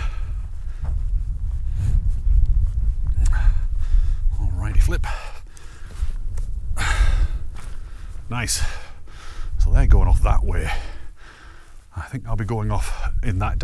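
Strong wind gusts and buffets across open ground.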